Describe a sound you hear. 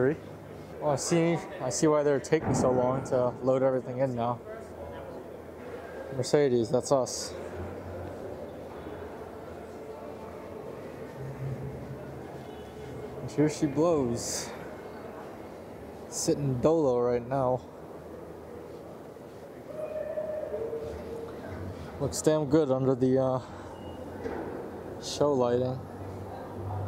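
A young man talks with animation close by, in a large echoing hall.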